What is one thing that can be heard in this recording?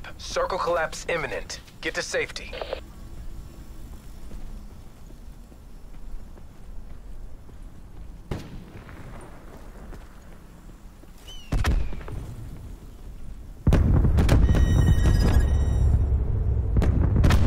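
Footsteps crunch on dry dirt.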